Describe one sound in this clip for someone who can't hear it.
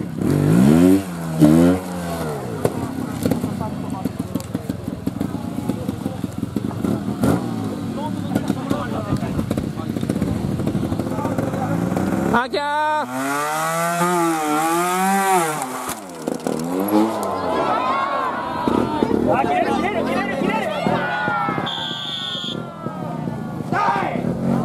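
A motorcycle engine revs hard in sharp bursts nearby.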